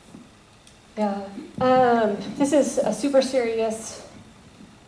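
A young woman speaks animatedly into a microphone.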